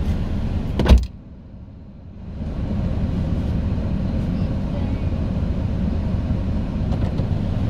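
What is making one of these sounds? A car engine idles with a low, steady rumble from inside the car.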